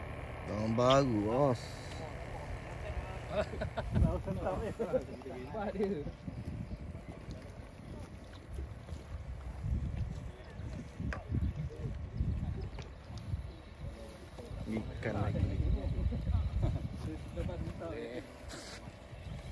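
Men talk casually outdoors.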